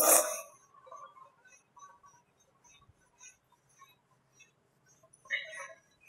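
A cloth wipes softly across a chalkboard.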